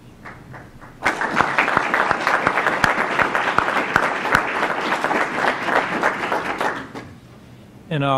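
A small group of people applauds in a room.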